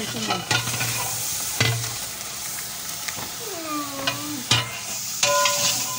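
Grains pour from a plastic bowl into a metal pot.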